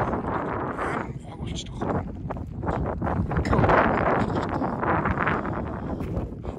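Footsteps crunch on dry gravel.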